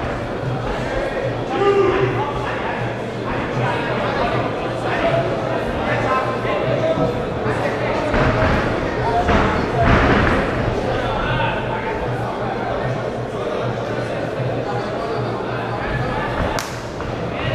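Voices of a crowd murmur and shout in a large echoing hall.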